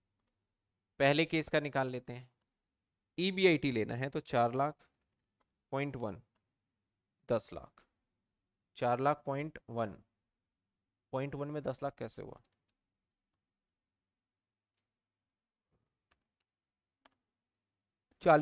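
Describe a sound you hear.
A man explains calmly into a close microphone, in short phrases with pauses.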